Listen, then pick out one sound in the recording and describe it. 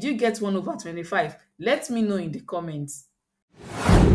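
A woman speaks clearly and with animation into a close microphone.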